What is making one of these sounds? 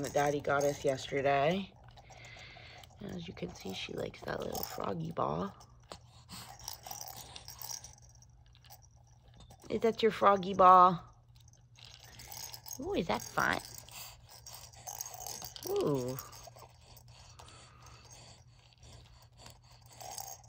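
A plastic toy ball rattles in a baby's hands.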